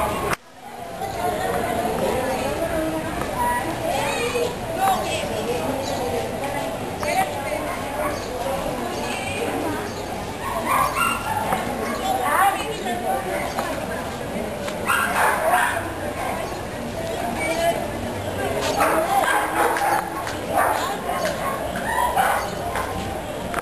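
Children shout and call out to each other outdoors at a distance.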